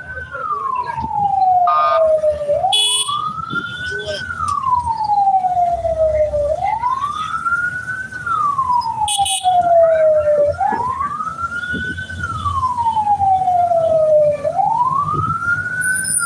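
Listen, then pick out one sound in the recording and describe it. Motorcycle engines hum nearby.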